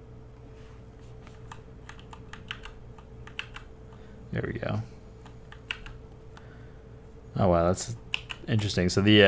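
Fingers tap quickly on a clicky keyboard.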